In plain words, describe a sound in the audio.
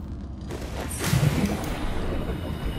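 Water splashes loudly as a diver plunges into the sea.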